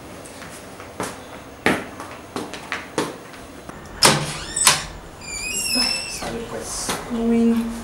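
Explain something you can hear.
Footsteps knock on a hard floor.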